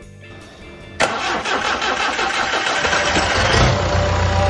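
A starter motor whirs loudly as a diesel engine cranks.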